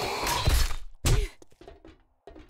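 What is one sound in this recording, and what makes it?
A nail gun fires with a sharp bang.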